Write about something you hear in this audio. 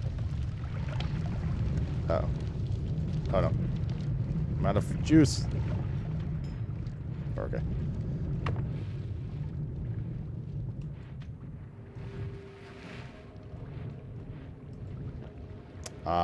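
A man talks quietly into a microphone, close by.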